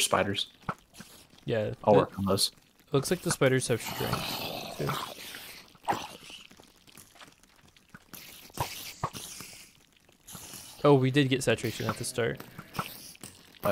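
Zombies groan nearby.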